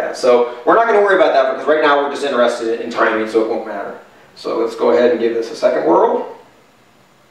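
A man talks calmly and explains nearby.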